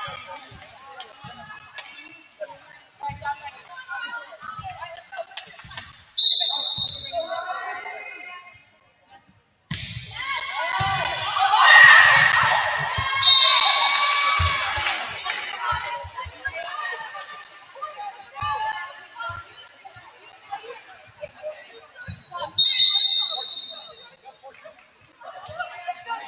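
Young women players call out to each other.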